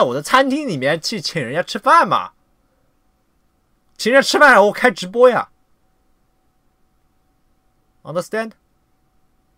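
A young man speaks calmly and close to a microphone, in short bursts with pauses.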